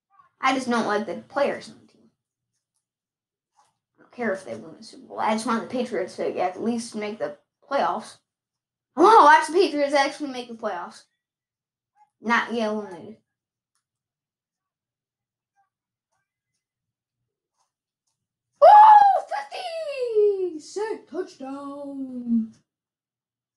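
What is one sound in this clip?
A young boy talks close by with excitement.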